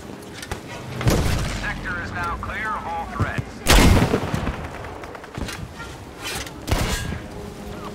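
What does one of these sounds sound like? Explosions boom nearby.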